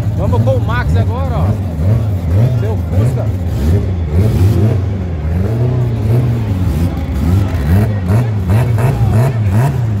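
A car engine idles roughly with a deep, lumpy rumble that rises and falls.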